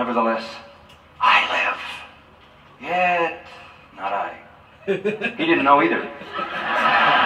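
An elderly man preaches forcefully through a television speaker, in bursts with pauses.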